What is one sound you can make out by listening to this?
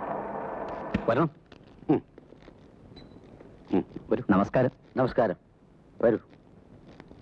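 Men talk briefly nearby.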